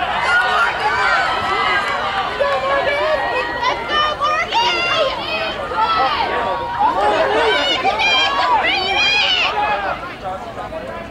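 A crowd of young people shouts and cheers loudly outdoors.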